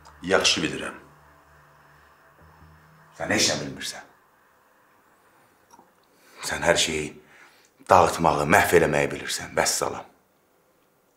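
A man speaks in a strained, emotional voice close by.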